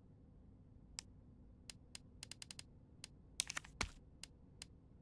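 Short electronic menu clicks tick as a cursor moves through a list.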